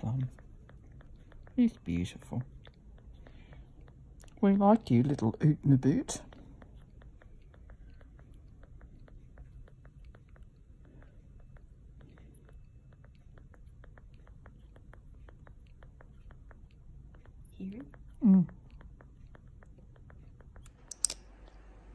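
A baby bat suckles with soft, rapid clicking sounds.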